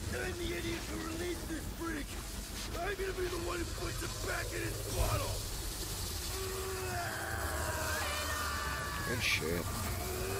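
Energy blasts roar and crackle.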